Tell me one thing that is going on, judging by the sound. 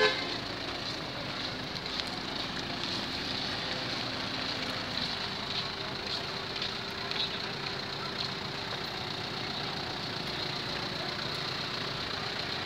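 A motorbike engine runs nearby.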